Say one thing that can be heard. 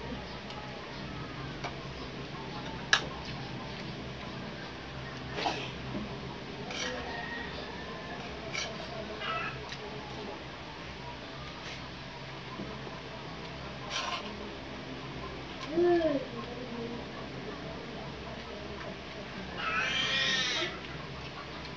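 A spoon clinks and scrapes against a plate.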